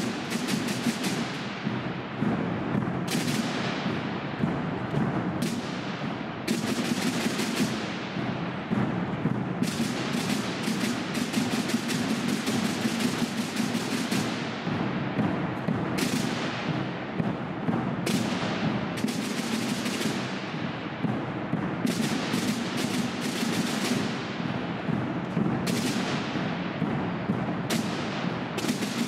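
Drums beat in a steady marching rhythm.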